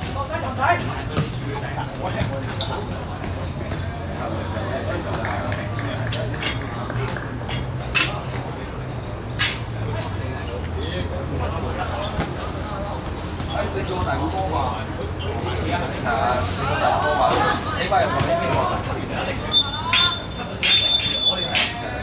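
Shoes squeak and scuff on a hard court.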